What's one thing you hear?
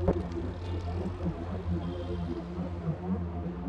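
A car engine idles and the car pulls away down the street.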